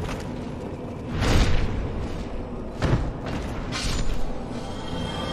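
A sword strikes armour with heavy thuds.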